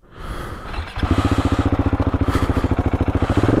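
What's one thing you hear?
A motorcycle engine idles with a steady, fast putter.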